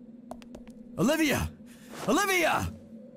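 A young man cries out loudly in anguish, twice.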